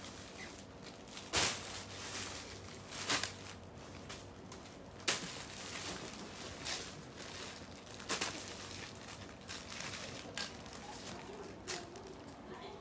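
Plastic bags rustle and crinkle as clothes are handled.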